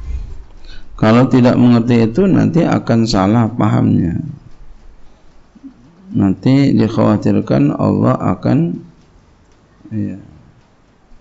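A man speaks calmly and with feeling into a microphone, in short phrases with pauses.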